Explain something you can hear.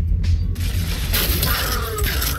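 A loud explosion roars and crackles.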